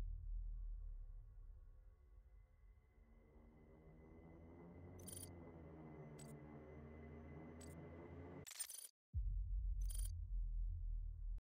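Deep, droning game music plays.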